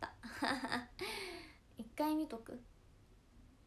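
A young woman speaks brightly and close to a microphone.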